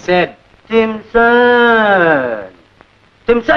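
A man calls out in a long, drawn-out voice.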